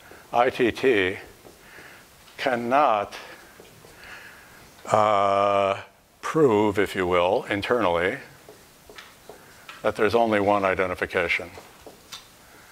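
A man lectures with animation.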